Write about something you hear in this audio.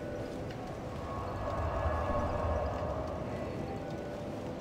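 A magical whooshing rumble swells and fades.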